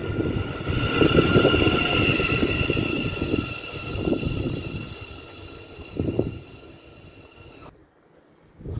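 A passing train's motors whine in a high, steady tone.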